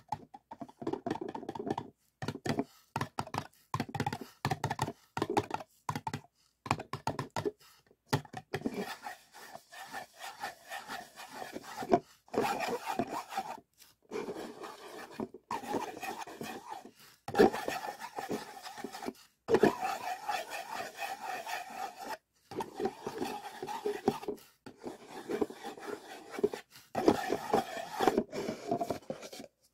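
Fingers tap and drum on hollow paper cups.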